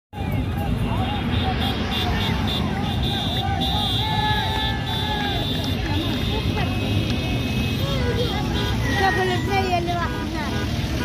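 Men shout and cheer nearby, outdoors.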